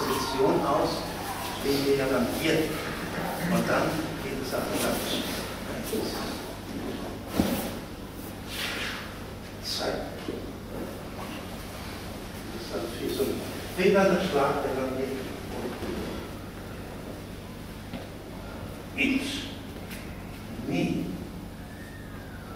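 A man speaks in a large echoing hall.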